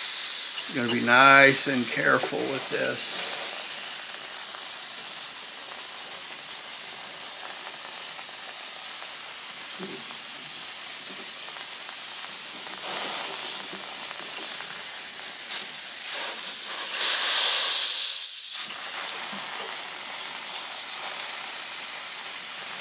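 Steam hisses from a steamer nozzle.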